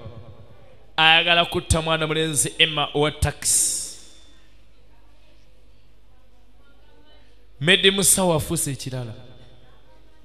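A man speaks tensely and firmly, close by.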